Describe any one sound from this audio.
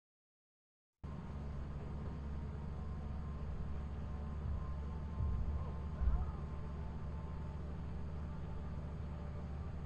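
A low mechanical hum drones steadily.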